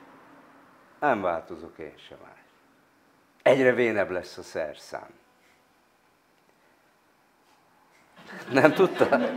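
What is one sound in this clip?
An elderly man speaks calmly and closely into a microphone, in short bursts with pauses.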